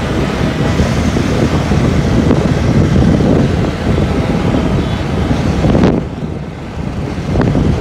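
A motorcycle engine rumbles loudly while riding.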